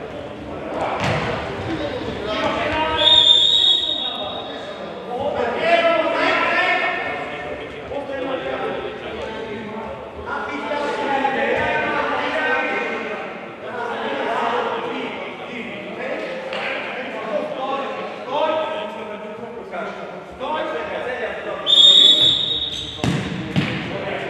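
A ball thuds as players kick it.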